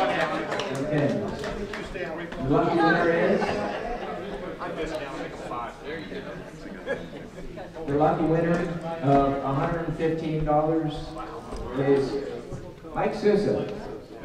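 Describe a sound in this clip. A crowd of men and women chatters in a large room.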